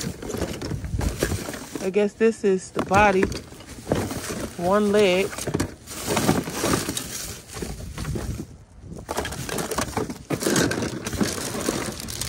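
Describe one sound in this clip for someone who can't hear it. Small hard objects clink and knock together.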